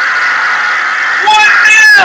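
A young man shouts in celebration.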